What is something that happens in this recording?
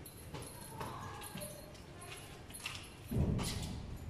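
Goats' hooves patter on a hard floor.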